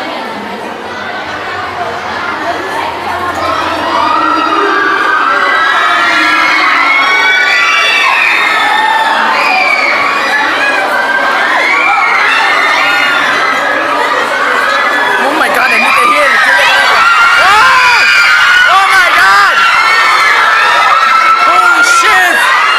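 A crowd of young women screams and shrieks excitedly nearby.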